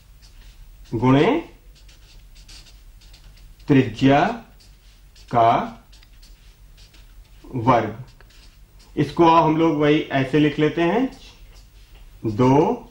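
A young man speaks calmly in short phrases, close by.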